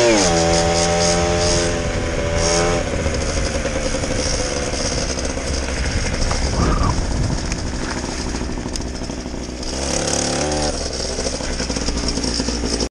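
A two-stroke gas scooter engine buzzes and revs while riding.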